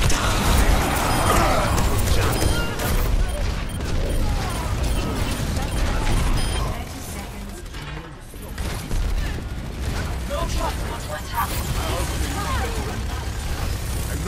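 Loud explosions boom and crackle.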